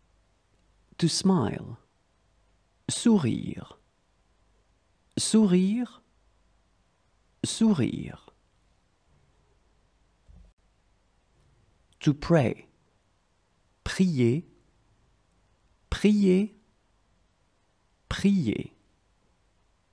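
A young woman reads out single words clearly into a microphone, with pauses between them.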